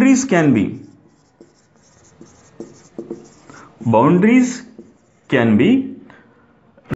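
A man speaks calmly and clearly, close by, in short phrases.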